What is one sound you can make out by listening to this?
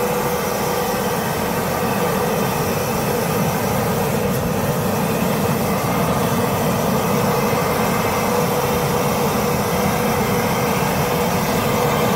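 A wood fire roars and crackles steadily.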